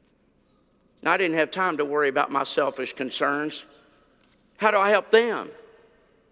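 An older man speaks calmly through a microphone.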